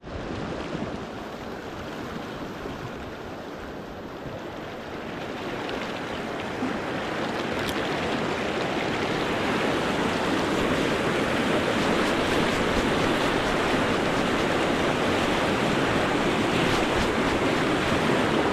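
A fast river rushes loudly over rapids, growing louder.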